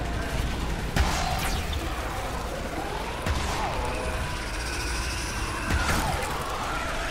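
A fiery magic blast bursts with a sudden whoosh.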